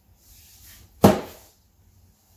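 A heavy speaker box thumps down onto a soft cushion.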